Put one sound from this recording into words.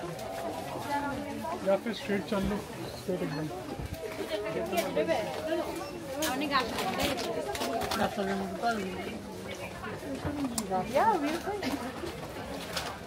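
Several men and women talk nearby in a busy, echoing space.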